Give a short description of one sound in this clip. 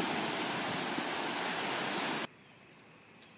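Small waves wash onto a beach and break with a rushing hiss.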